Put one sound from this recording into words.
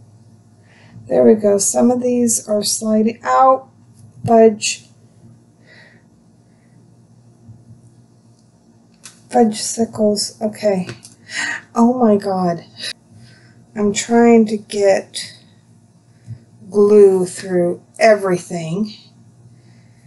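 A middle-aged woman talks calmly and close by, in short bursts.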